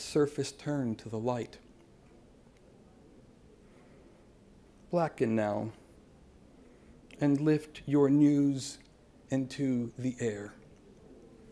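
A man reads aloud calmly into a microphone.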